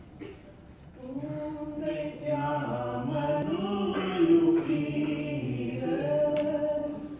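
A woman sings through a microphone and loudspeakers in a large room.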